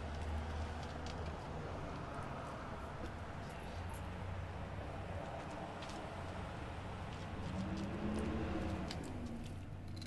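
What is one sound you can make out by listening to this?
Low traffic rumbles along a street outdoors.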